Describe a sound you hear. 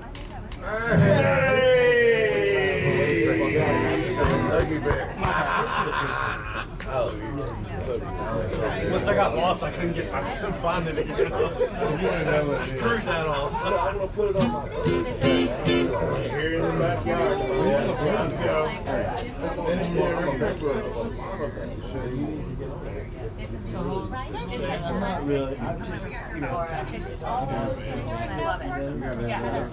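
A man sings into a microphone outdoors.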